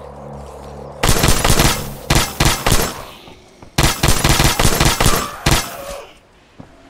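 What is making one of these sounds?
A heavy gun fires in loud bursts.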